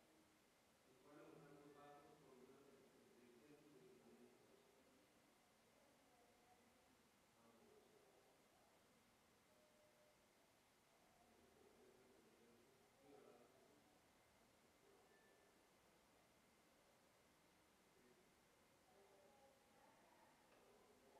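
A woman speaks softly and calmly.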